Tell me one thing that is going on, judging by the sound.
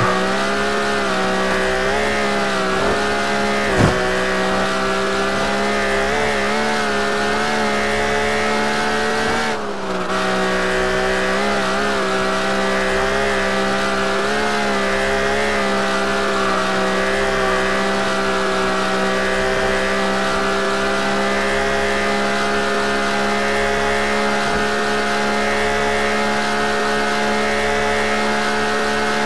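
A car engine roars steadily at high revs, with a brief dip as the gear shifts.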